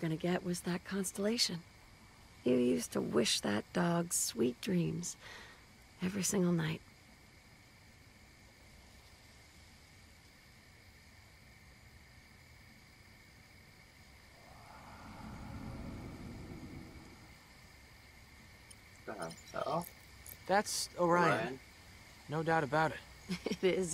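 A teenage boy speaks with a worried voice.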